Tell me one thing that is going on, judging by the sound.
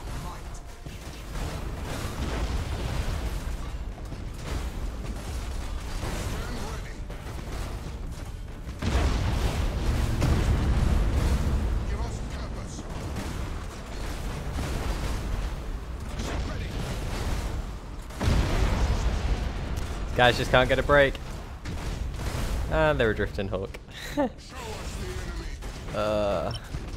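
Lasers zap in quick bursts.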